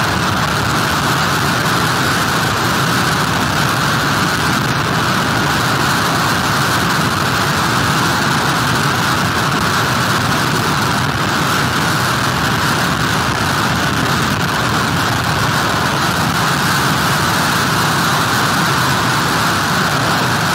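Heavy surf crashes and rushes onto a beach.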